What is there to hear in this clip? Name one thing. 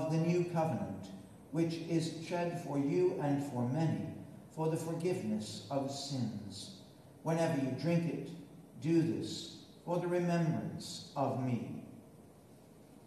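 A man chants slowly in a large echoing space.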